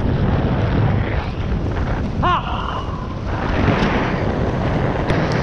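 Wind rushes loudly past, as if moving fast outdoors.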